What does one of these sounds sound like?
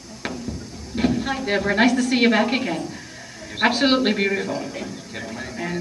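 A woman speaks into a microphone in a large hall.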